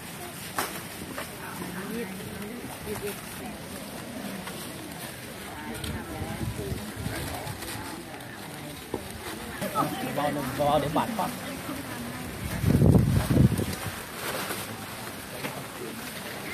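Plastic bags rustle.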